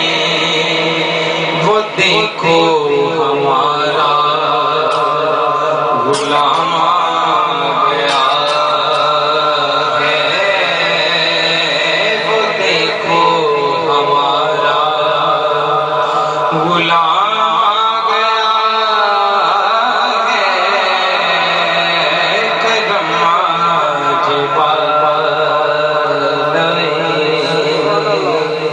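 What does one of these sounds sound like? A young man chants melodically into a microphone, heard through loudspeakers with echo.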